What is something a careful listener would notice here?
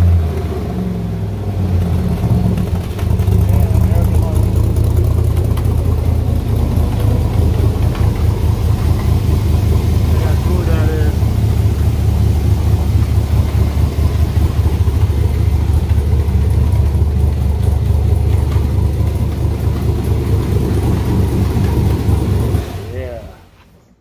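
A car engine idles with a deep, steady, throbbing rumble, then shuts off.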